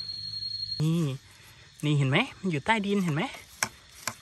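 A metal hoe scrapes through soil.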